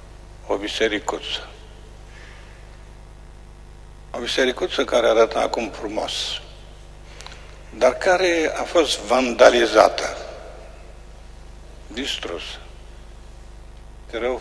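A man speaks calmly in short phrases, with echo around him.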